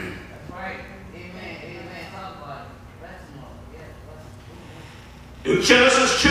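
A middle-aged man preaches into a microphone in an echoing hall, his voice rising loudly.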